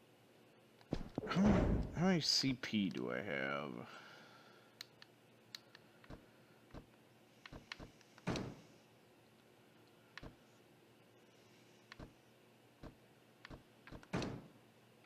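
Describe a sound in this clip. Menu blips and clicks sound in short bursts.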